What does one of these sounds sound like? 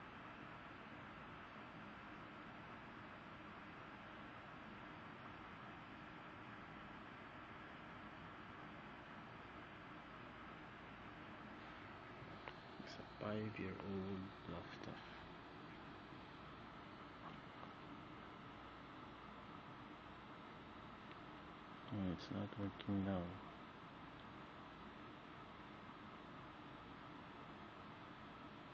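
A laptop fan hums quietly and steadily.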